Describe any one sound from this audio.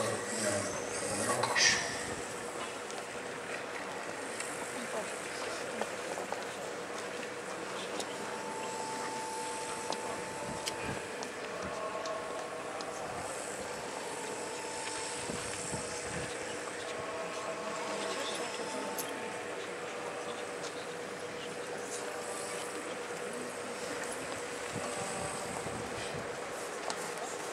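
A crowd of men and women murmurs quietly outdoors.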